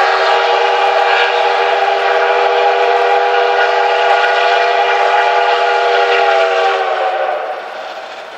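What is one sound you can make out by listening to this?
A steam locomotive's whistle blows a long, steady chord.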